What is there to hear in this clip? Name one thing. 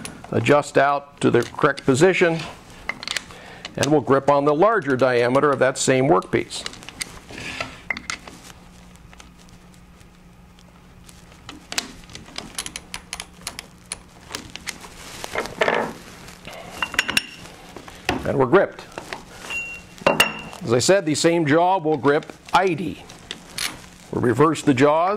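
A middle-aged man speaks calmly into a clip-on microphone, explaining.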